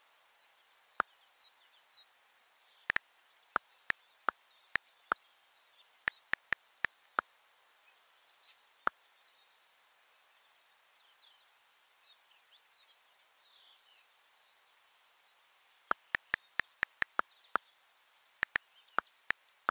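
A touch keyboard clicks softly with each key tap.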